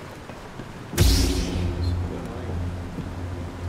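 A lightsaber ignites with a loud hum.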